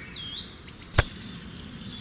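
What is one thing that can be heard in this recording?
A small plastic button clicks as a finger presses it.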